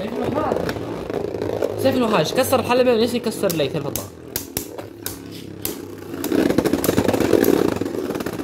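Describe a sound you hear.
Two spinning tops whir and scrape across a plastic bowl.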